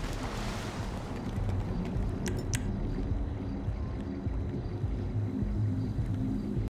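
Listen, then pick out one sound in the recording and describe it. Water laps and splashes gently in a pool.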